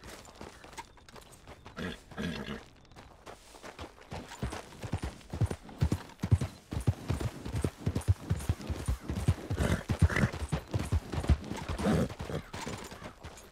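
Horse hooves thud rapidly on dry ground.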